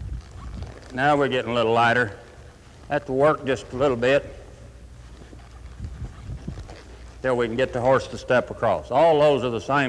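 A man speaks calmly and clearly through a microphone.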